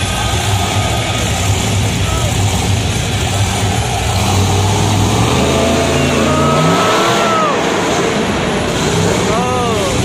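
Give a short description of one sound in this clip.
A monster truck engine roars and revs up.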